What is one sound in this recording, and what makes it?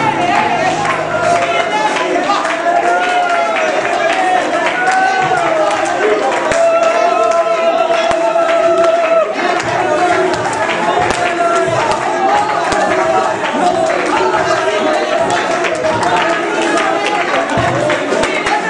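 People clap their hands.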